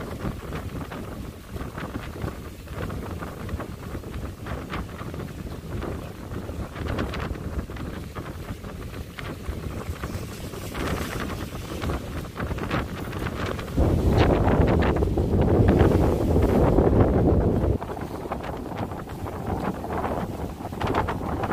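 Strong wind buffets and rumbles against the microphone outdoors.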